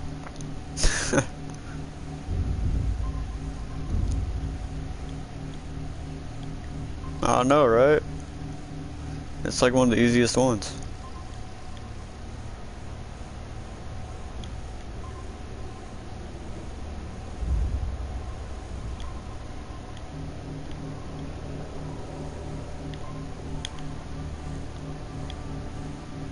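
A submarine engine hums low and steadily underwater.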